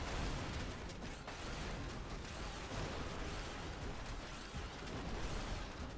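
Metal and debris crash and clatter as a structure is smashed.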